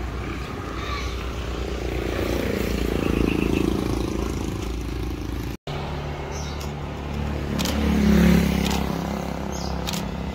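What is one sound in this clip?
A motorbike engine hums past nearby.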